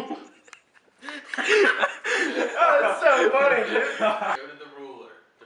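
A young man laughs loudly close by.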